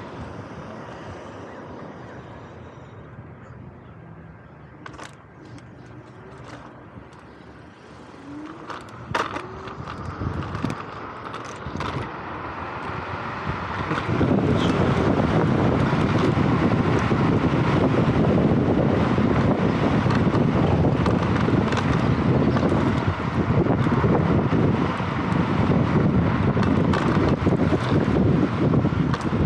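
A motorcycle engine idles and then revs as the bike rides off.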